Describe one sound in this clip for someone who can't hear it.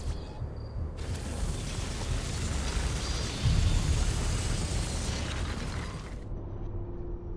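A loud rushing whoosh swells and then cuts off.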